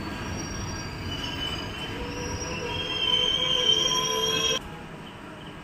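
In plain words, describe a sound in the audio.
Train brakes squeal sharply.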